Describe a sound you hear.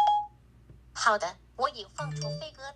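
A synthetic woman's voice speaks from a phone's small speaker.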